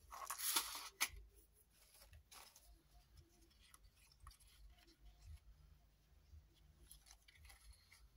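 Paper rustles and crinkles as hands handle it.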